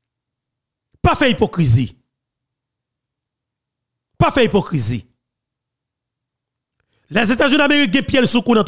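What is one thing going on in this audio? A man speaks with animation into a close microphone, in short bursts.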